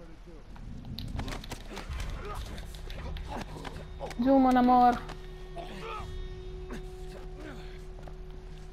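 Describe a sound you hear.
Bodies scuffle and thump in a struggle.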